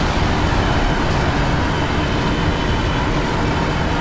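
Tyres screech as a race car brushes another car.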